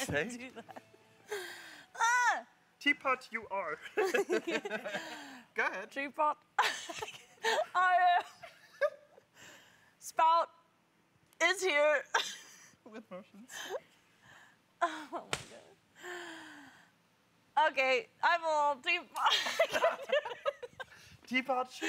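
A young woman talks excitedly and laughs.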